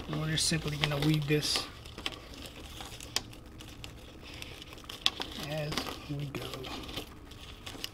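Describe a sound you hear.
A sticky sheet peels away with a soft crackle.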